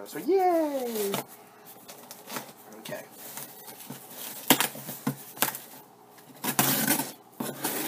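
A blade slits packing tape on a cardboard box.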